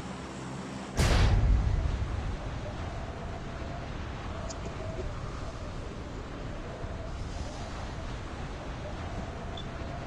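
Wind rushes loudly past a falling skydiver, then settles into a steady roar.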